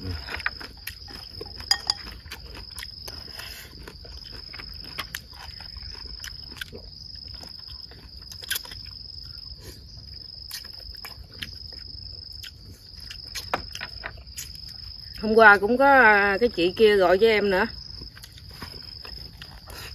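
Two men slurp and chew food.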